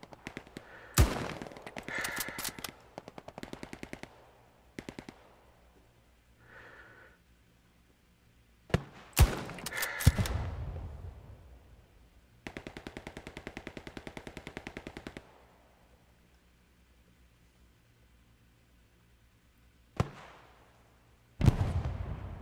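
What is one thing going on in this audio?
A rifle fires loud, sharp shots that echo and fade.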